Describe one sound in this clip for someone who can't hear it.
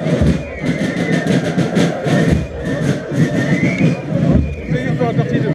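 A large crowd chatters and cheers.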